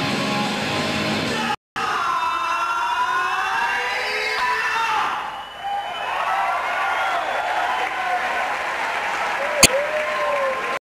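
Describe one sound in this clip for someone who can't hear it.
A rock band plays loudly with distorted electric guitars in a large echoing hall.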